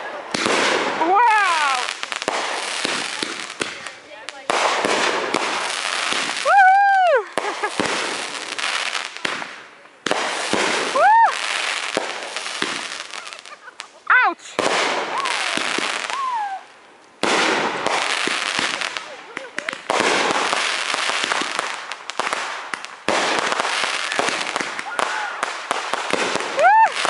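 Fireworks whistle as they shoot up into the sky.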